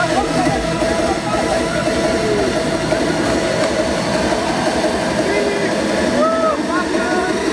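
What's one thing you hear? A dense crowd chatters and cheers loudly outdoors.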